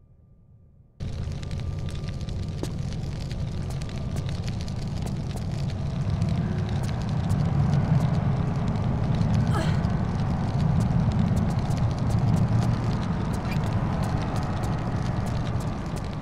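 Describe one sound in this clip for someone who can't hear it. Footsteps tap quickly and steadily on a hard floor.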